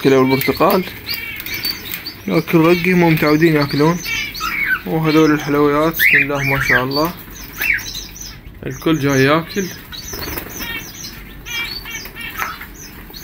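Small birds chirp and twitter nearby.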